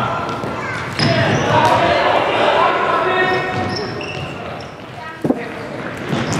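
A ball is kicked with a thump.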